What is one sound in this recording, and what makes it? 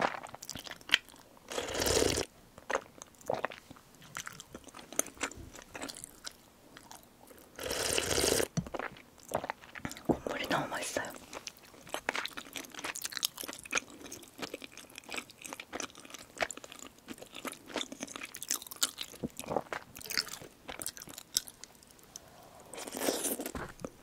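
A young woman chews and smacks her lips close up.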